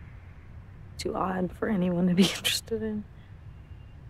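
A young woman speaks softly and wistfully, close by.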